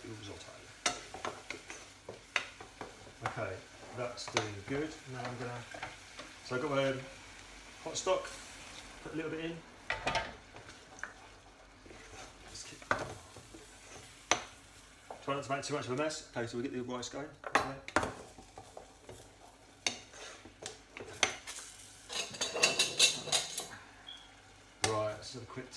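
A spoon scrapes and clinks against a metal pot.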